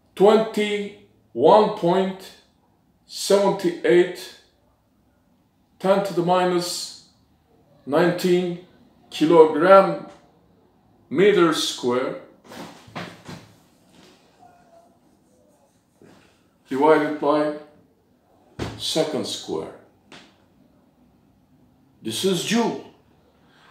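A middle-aged man speaks calmly and explains, close to the microphone, in short phrases with pauses.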